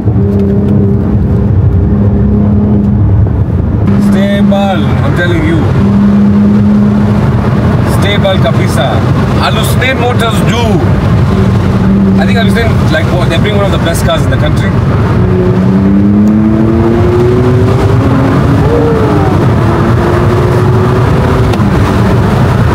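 Wind rushes loudly past an open car.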